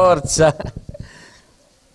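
A man speaks into a microphone over a loudspeaker.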